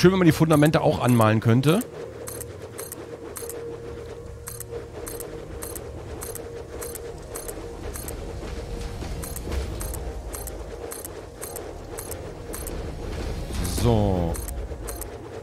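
A rising and falling electronic whoosh sweeps by.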